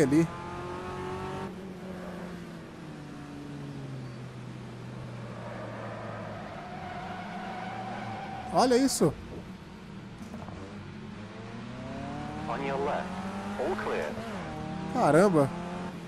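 A racing car engine drones and revs up and down.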